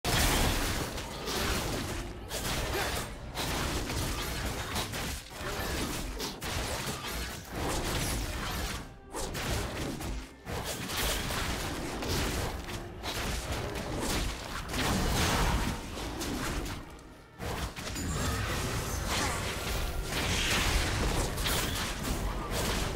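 Video game fight effects crackle and whoosh with magic blasts and hits.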